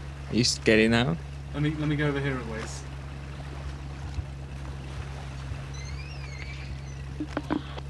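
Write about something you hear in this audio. Water splashes as a swimmer moves through waves.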